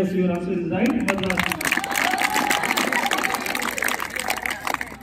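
A crowd of children claps their hands.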